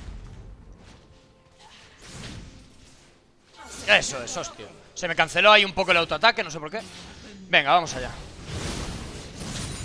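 Magical spell effects whoosh and crackle during a fight.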